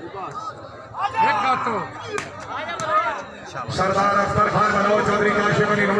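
Crowd members shout and cheer loudly.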